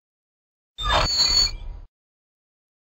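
Heavy double doors creak and swing open.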